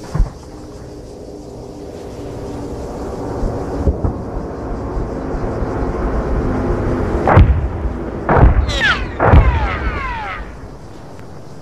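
A propeller plane drones overhead, growing louder.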